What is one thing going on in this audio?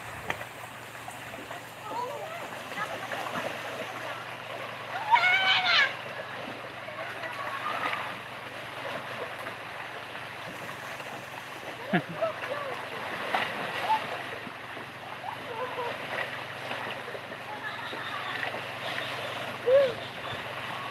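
Small waves lap gently against rocks on the shore.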